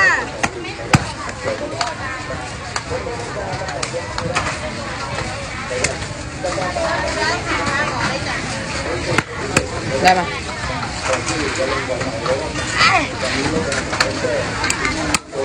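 A cleaver chops sharply into a wooden block.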